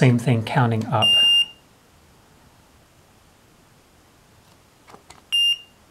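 An electronic timer beeps sharply.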